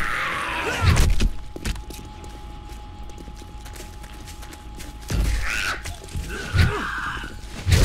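A heavy club thuds against a body.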